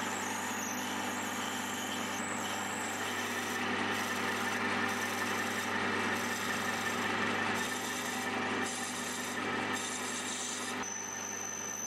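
A drill bit grinds into spinning metal.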